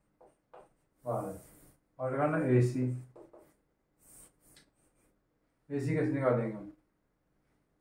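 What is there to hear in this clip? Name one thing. A middle-aged man speaks calmly, close by, with pauses.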